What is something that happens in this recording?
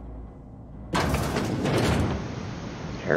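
A heavy metal door slides open with a loud hiss.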